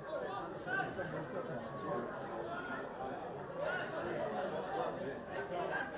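Spectators chatter nearby outdoors.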